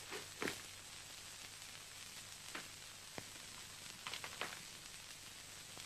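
Leaves rustle and twigs snap as a man moves through brush.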